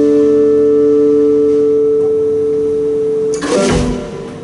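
A keyboard holds a steady, ringing chord with a band, then stops.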